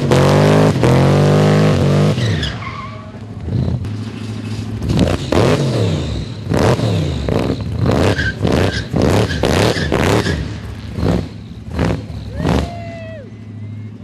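Tyres screech as they spin on the road.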